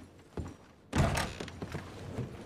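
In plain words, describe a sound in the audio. A wooden door swings open.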